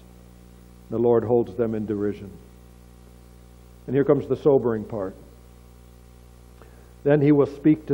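An older man speaks calmly into a microphone in short phrases, with pauses between them.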